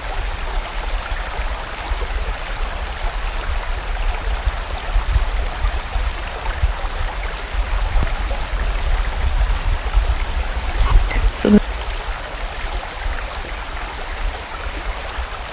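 A stream rushes and gurgles over rocks.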